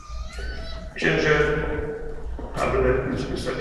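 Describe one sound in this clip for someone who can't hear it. A congregation sings together.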